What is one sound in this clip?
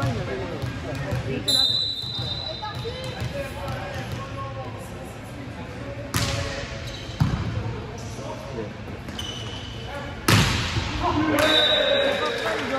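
Players shout and call out to each other across an echoing hall.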